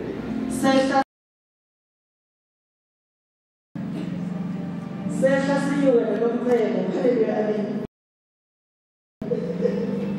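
A woman speaks with animation into a microphone over loudspeakers.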